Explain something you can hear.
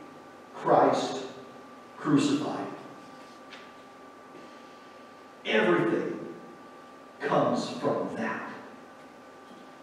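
A man speaks slowly and solemnly in a large echoing hall.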